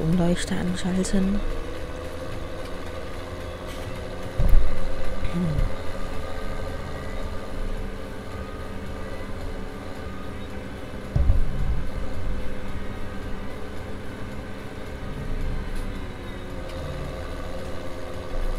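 A trailer rattles and clunks behind a tractor.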